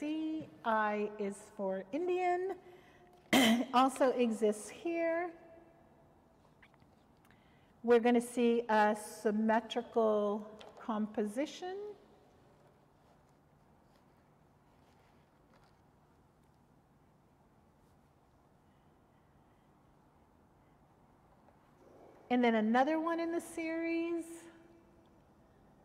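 An elderly woman reads aloud calmly into a microphone.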